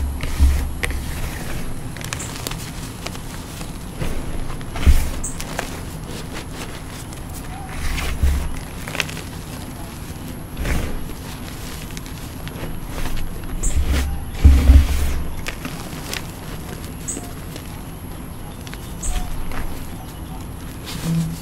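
Hands squeeze and crumble soft powder close up, with soft crunching and rustling.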